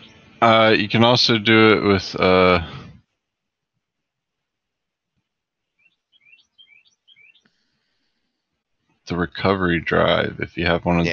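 A young man talks casually into a close microphone, with pauses.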